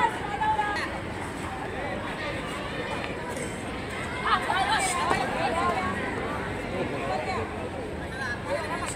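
Several boys shout and call out nearby outdoors.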